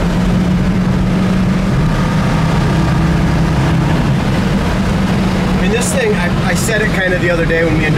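Wind and road noise rush past the car.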